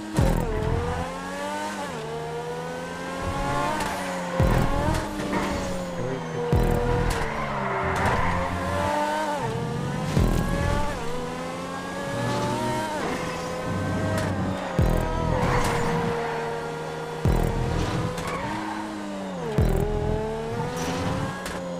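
A racing car engine roars, revving up and dropping sharply at each gear shift.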